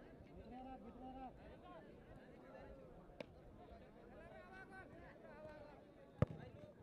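A crowd of men chatters and calls out nearby outdoors.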